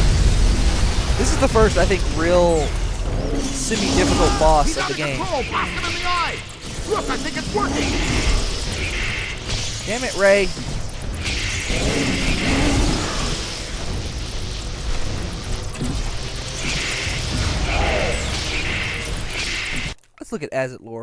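An energy beam weapon crackles and hums loudly.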